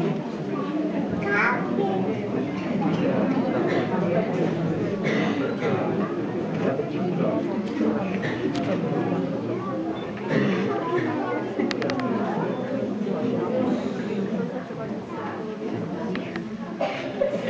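A crowd of young children chatter close by.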